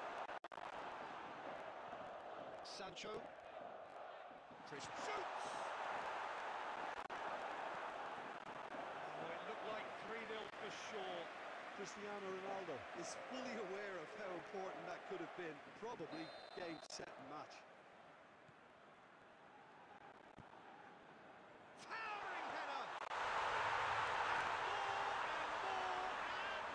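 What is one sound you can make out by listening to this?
A stadium crowd roars and murmurs.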